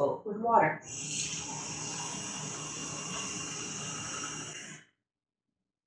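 Water runs from a tap into a glass.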